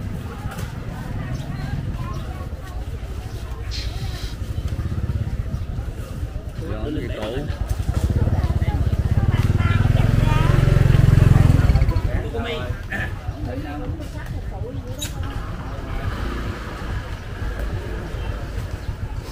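A motorbike engine hums steadily while riding slowly.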